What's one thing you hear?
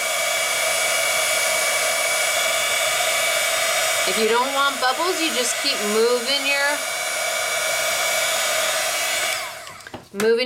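A heat gun blows with a steady, loud whirring hum.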